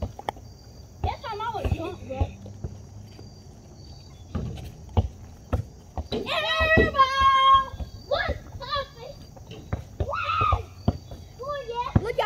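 Young children shout and call out excitedly outdoors.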